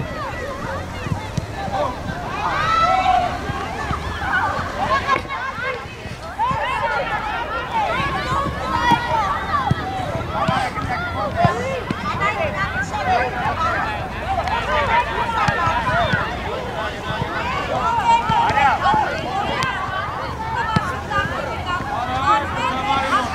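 Young women shout and call out outdoors across an open field.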